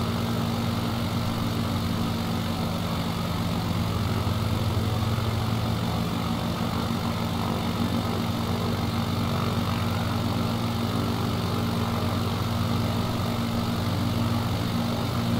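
Wind rushes past a small plane.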